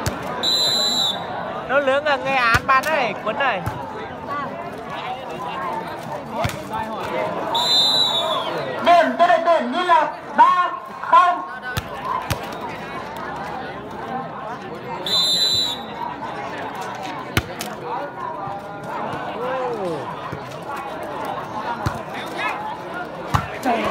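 A large crowd of spectators chatters and cheers outdoors.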